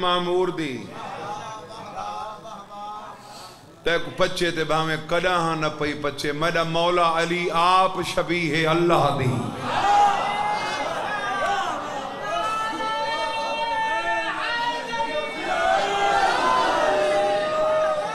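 A young man speaks with animation into a microphone, heard through a loudspeaker.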